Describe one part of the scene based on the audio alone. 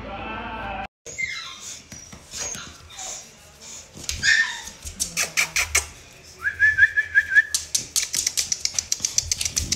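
A dog's claws tap and scrape on a hard floor.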